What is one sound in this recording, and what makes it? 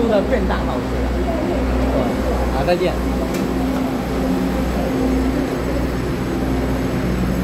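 A train hums with a steady low rumble close by.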